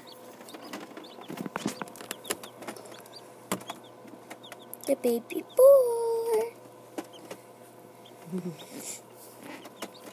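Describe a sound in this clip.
A newly hatched chick peeps softly and repeatedly.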